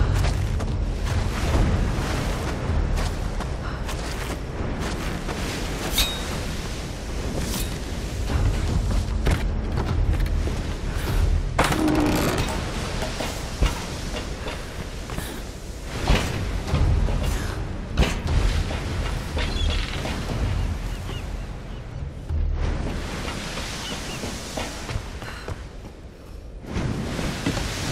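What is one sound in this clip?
Wind and rain roar steadily outdoors.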